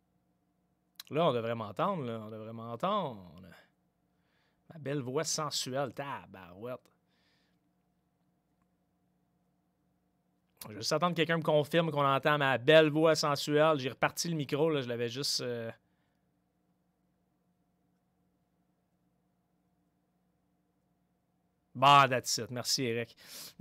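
A man talks steadily, close to a microphone, in bursts with pauses.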